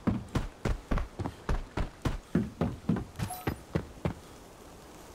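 Quick footsteps thud on the ground.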